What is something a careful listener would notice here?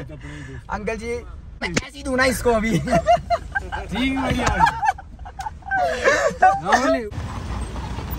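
A young man talks and laughs with animation close by.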